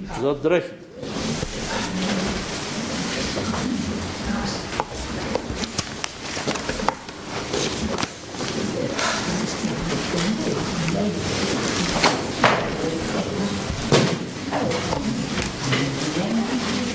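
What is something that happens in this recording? A crowd of men and women murmur prayers aloud together.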